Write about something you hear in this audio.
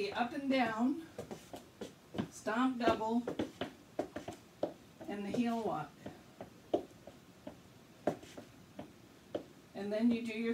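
Shoes tap and scuff on a wooden floor in a quick dance rhythm.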